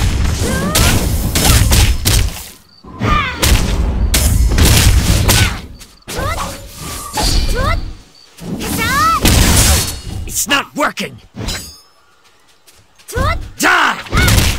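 Weapon strikes and magic blasts boom and crackle in bursts.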